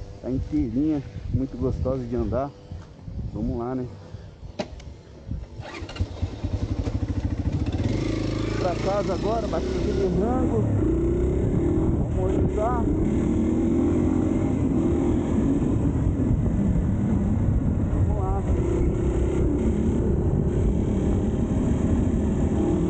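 A motorcycle engine rumbles and revs as the bike rides along close by.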